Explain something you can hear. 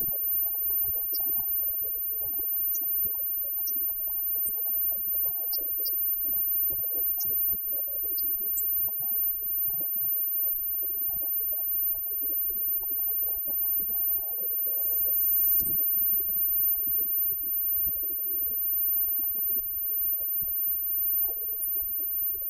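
A live rock band plays loudly with electric guitars.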